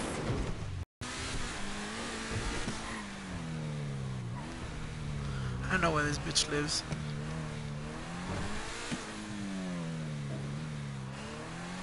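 A sports car engine revs and drones, rising and falling in pitch.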